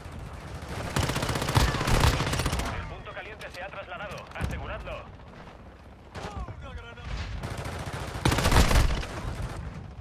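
Automatic rifle gunfire rattles in rapid bursts.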